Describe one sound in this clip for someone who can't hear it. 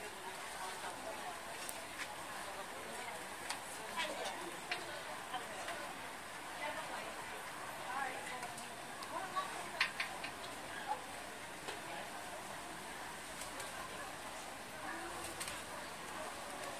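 Patties sizzle on a hot griddle.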